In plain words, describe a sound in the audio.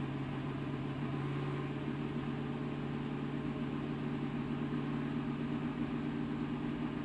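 A race car engine roars steadily at high speed, heard from up close.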